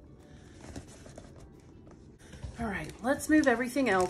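A cardboard box is set down on a table with a soft thud.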